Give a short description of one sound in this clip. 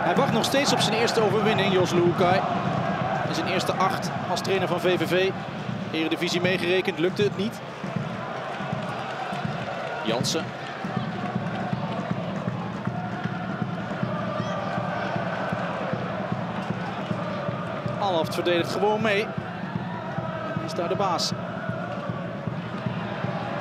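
A stadium crowd murmurs and chants steadily outdoors.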